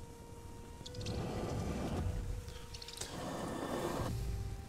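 A man talks into a close microphone.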